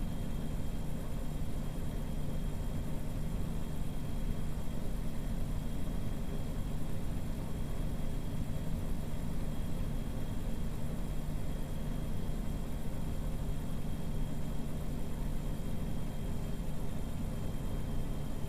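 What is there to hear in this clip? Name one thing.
A truck engine hums steadily with a low rumble.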